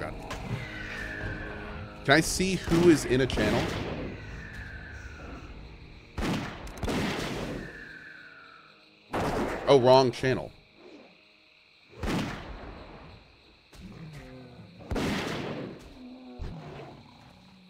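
Game combat sounds of hits and spells ring out.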